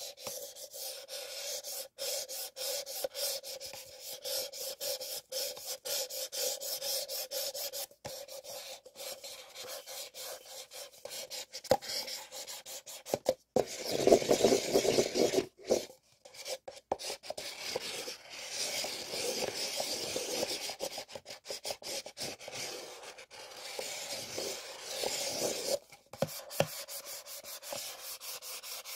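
Paper cups rub and scrape against each other close up.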